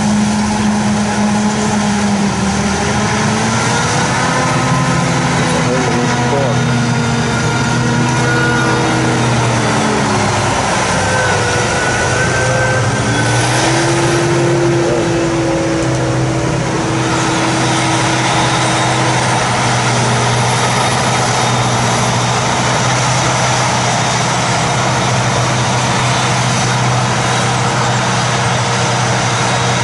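A forage harvester roars steadily as it chops a crop.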